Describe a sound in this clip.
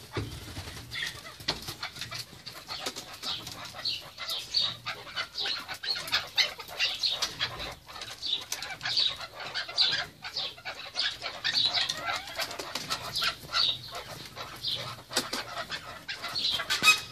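Partridges call with rapid, harsh chirps close by.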